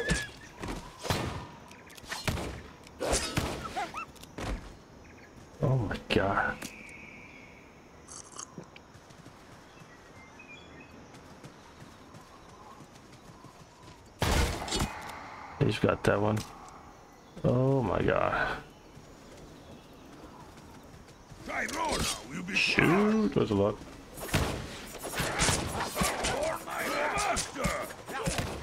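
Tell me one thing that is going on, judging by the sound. Magic blasts burst with a crackle.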